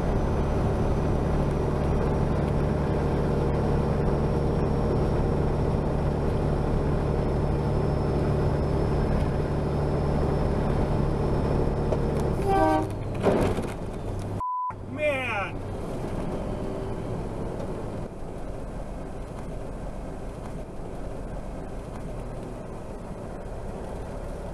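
A truck engine drones steadily from inside the cab.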